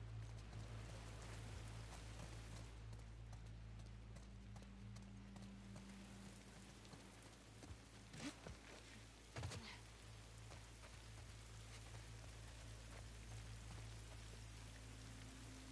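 Footsteps thud softly on wooden boards and then on grass.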